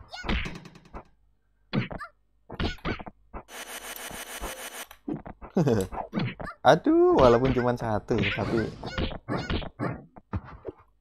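Cartoonish fighting sound effects burst and whoosh in short bursts.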